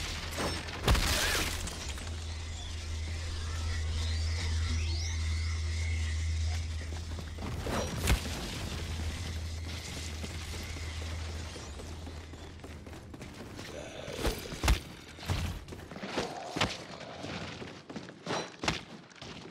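Gunshots crack sharply now and then.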